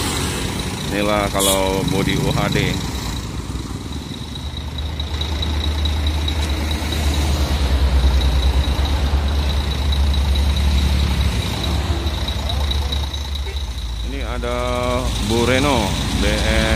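A bus horn plays a loud, tuneful blare in short bursts.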